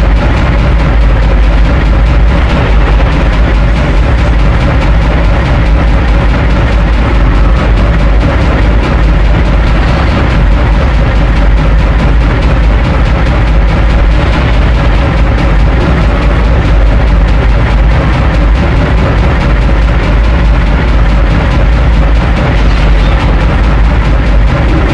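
A twin-barrelled turret cannon fires in rapid bursts.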